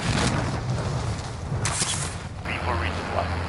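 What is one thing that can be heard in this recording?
Wind rushes loudly past a parachutist.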